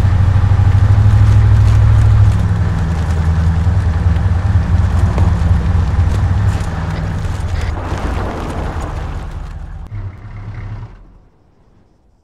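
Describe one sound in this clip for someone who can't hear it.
A vehicle engine rumbles loudly as the vehicle drives over rough ground.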